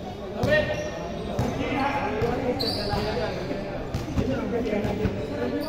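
Basketballs bounce on a hard court in a large echoing hall.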